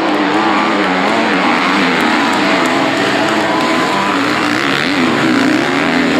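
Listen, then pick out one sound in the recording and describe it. Dirt bike engines rev and whine loudly, rising and falling in pitch.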